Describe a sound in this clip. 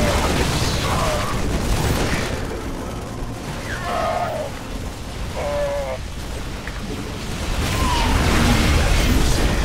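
Gunfire and laser blasts crackle in a fierce battle.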